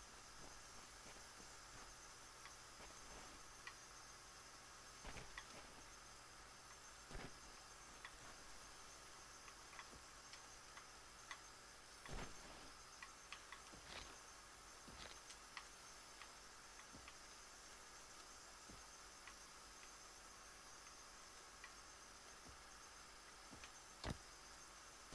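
A steady hum of insects and forest ambience plays quietly.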